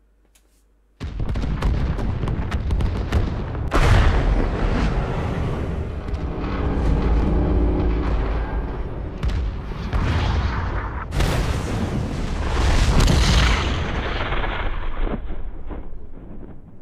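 Explosions boom and rumble one after another.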